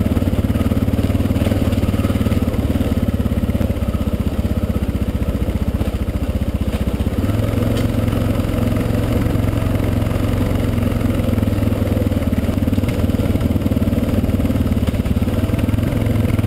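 A motorcycle engine drones steadily up close, its pitch shifting as it changes speed.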